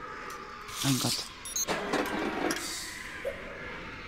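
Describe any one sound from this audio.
An electronic lock clicks open.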